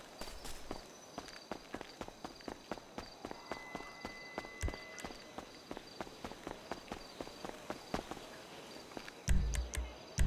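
Quick footsteps slap on pavement as a man runs.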